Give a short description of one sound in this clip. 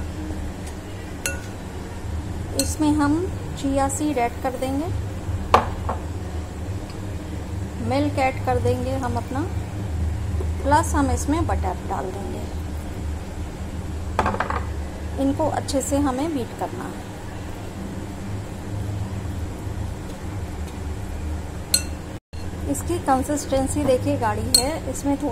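A metal spoon scrapes and stirs inside a glass bowl.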